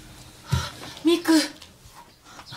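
A man exclaims in surprise close by.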